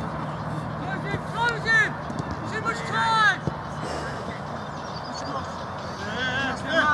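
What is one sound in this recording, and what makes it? Men shout loudly to each other outdoors.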